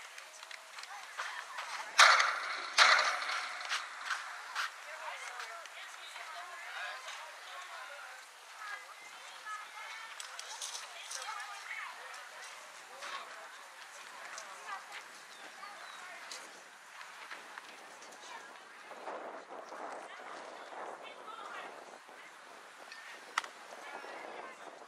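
Children call out and chatter across an open field.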